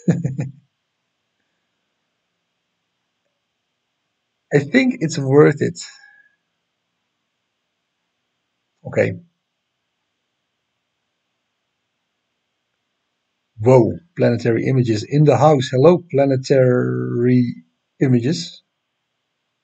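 A woman talks casually into a close microphone, in short bursts with pauses.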